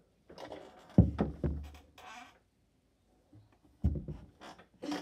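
Knocks and thumps rattle close by as something is handled.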